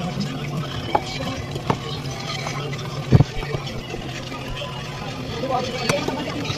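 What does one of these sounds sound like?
A fork clinks against a bowl.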